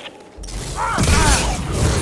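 Blaster bolts zap past.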